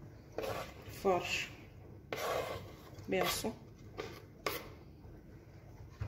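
A knife scrapes food off a wooden board into a bowl.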